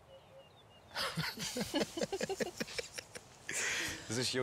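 A man laughs heartily close by.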